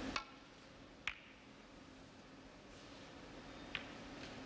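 Snooker balls clack together.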